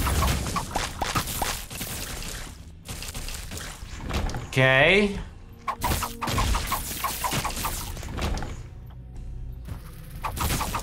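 Small shots pop and splat in quick bursts.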